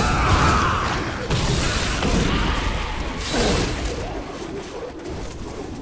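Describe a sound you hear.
Fiery spells roar and crackle in a battle.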